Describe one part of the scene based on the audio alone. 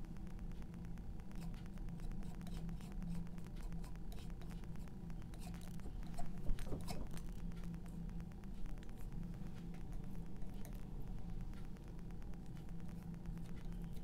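A palette knife scrapes paint across a canvas.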